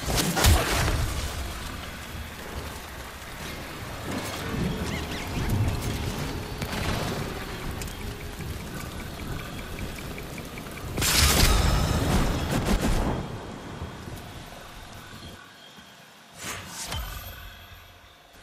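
Gunfire and blasts ring out in a game.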